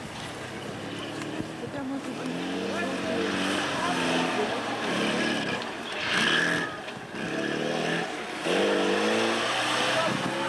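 An off-road truck's engine roars and revs hard, rising and falling as it climbs.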